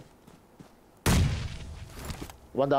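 A grenade explodes with a heavy boom.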